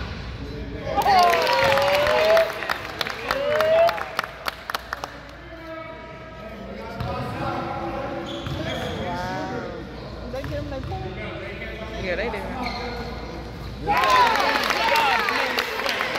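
Spectators cheer and shout in an echoing hall.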